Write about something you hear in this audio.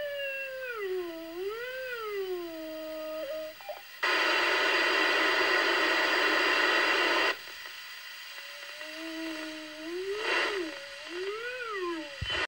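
A radio scanner plays warbling, wavering tones through its speaker.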